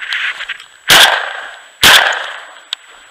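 A shotgun fires two loud shots close by.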